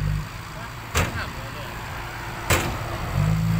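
Metal clanks sharply as a truck's tailgate bangs.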